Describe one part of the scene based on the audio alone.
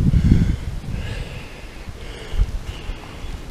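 Wind gusts outdoors and rustles leaves.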